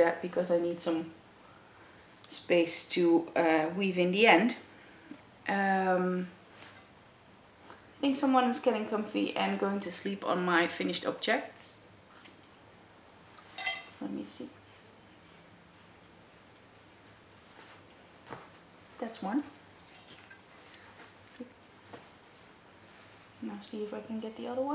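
A woman talks calmly and close by, pausing now and then.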